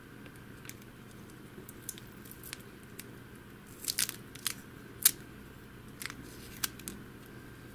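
Small plastic and metal parts click and tap.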